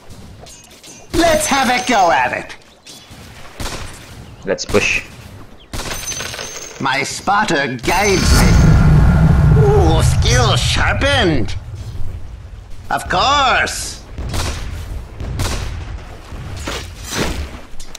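Magic spells whoosh, zap and crackle in a fantasy battle.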